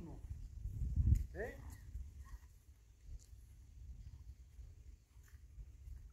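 Footsteps tread softly on grass.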